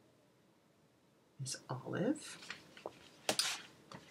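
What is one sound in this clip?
Magazine pages rustle as they are flipped.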